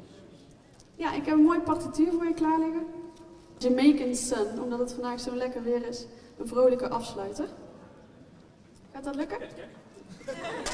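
A young woman speaks calmly through a microphone and loudspeakers.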